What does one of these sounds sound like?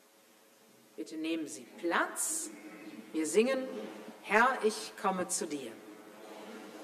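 A woman speaks calmly through a microphone in an echoing hall.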